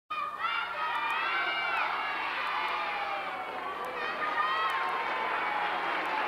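A group of young children sing together.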